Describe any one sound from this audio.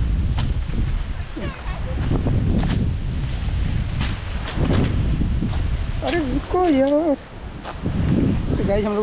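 Dry leaves crunch under footsteps.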